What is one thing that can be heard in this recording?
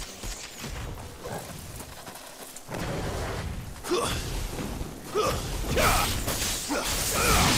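Magic blasts crackle and boom in a fight.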